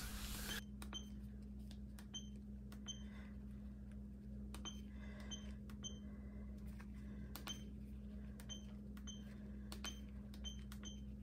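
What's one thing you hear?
A keypad gives short soft beeps as buttons are pressed.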